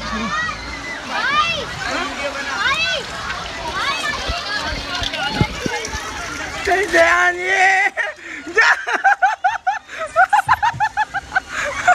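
Water rushes and splashes down a slide.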